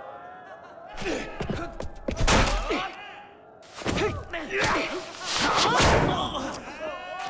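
Wooden weapons clash and thud in a fight.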